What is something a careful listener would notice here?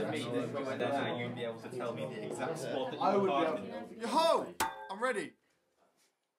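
A group of young men and women talk and laugh.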